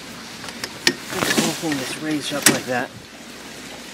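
Sail cloth rustles as it is handled.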